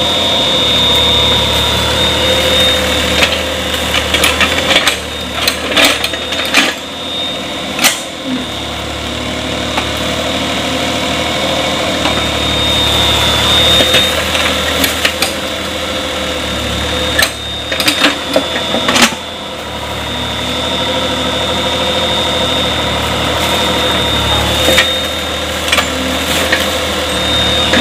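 A small excavator engine rumbles steadily nearby, rising and falling as the arm works.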